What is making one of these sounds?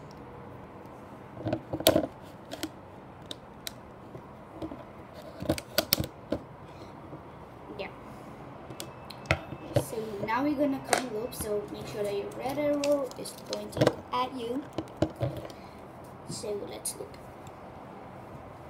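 Plastic pegs and rubber bands click and tap up close.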